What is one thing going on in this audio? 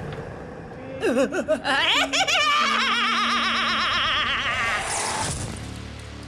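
A woman laughs loudly and shrieks.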